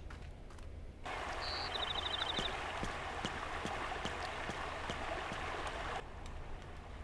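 Water rushes loudly.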